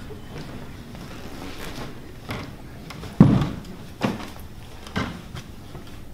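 Footsteps thud across a hard floor.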